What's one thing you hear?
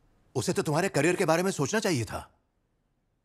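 A man speaks calmly and earnestly.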